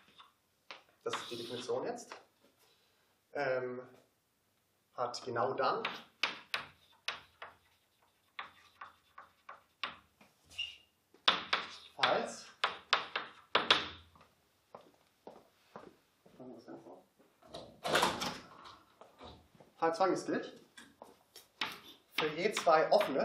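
A man speaks calmly, like a lecturer.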